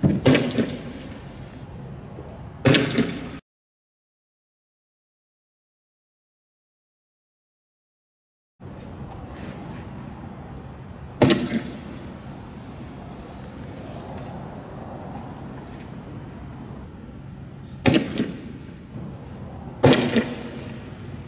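Loud bangs go off outdoors, echoing.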